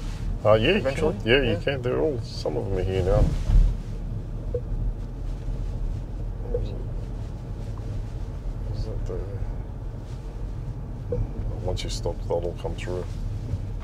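Tyres hum steadily on the road inside a quiet moving car.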